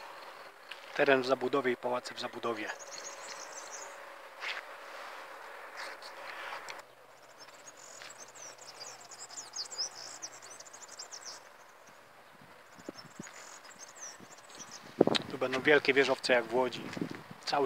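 A man speaks calmly close to the microphone, outdoors.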